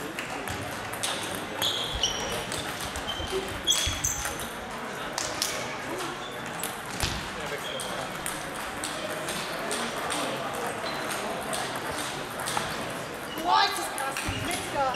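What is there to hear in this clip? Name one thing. A table tennis ball clicks quickly back and forth off paddles and a table.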